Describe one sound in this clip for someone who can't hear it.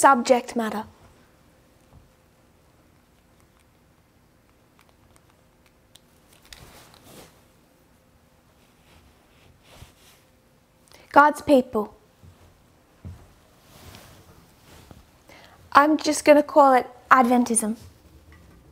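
A woman speaks calmly and clearly, close by, in short bursts.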